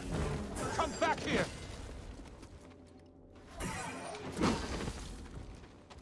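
A lightsaber swings with a buzzing whoosh.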